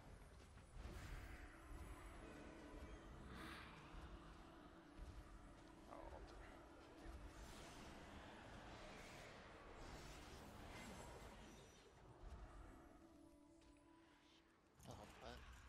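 Magic spells whoosh and burst in a busy fantasy battle.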